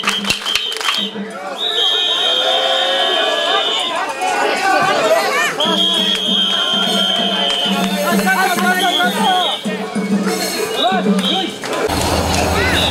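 A large crowd of men chant loudly in rhythm, close by.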